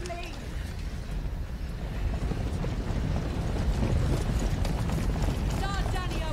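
A large army marches with a low rumbling roar.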